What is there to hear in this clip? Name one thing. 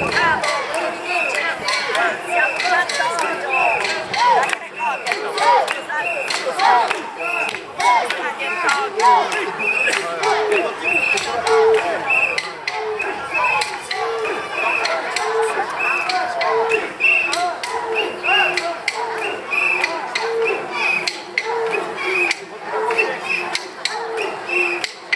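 Men and women in a crowd chatter and cheer all around.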